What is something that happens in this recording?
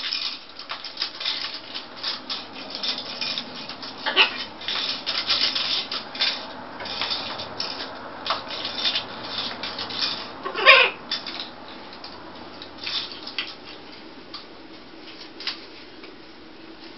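Parrots' beaks click and scrape on a plastic toy.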